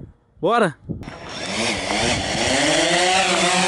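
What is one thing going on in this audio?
A drone's propellers whir loudly as it lifts off.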